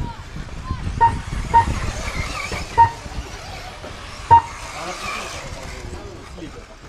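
A small radio-controlled car whines as it races over dirt.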